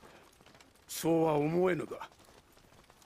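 A man speaks in a choked, tearful voice.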